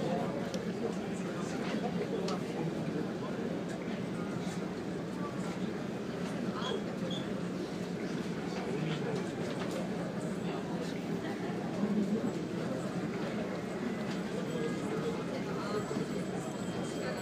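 Waves wash and splash steadily against a moving boat's hull.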